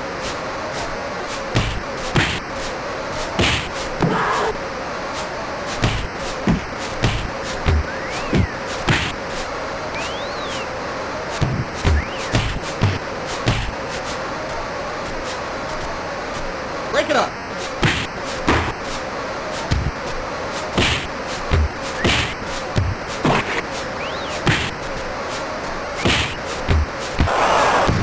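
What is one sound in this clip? Punches thud against a boxer again and again.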